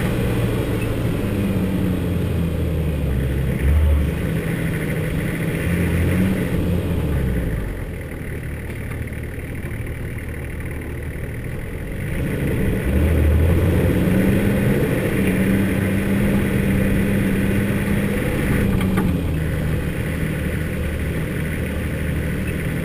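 Tyres crunch and rumble over a dirt and gravel track.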